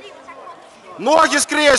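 A man shouts loudly near the end.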